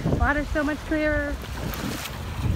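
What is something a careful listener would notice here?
A young woman talks close by, outdoors in wind.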